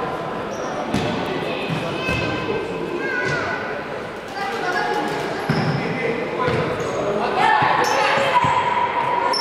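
A futsal ball is kicked with hollow thuds in a large echoing hall.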